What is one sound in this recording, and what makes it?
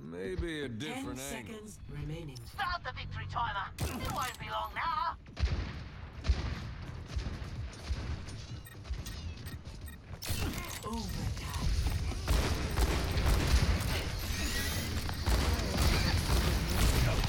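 A revolver fires in quick bursts.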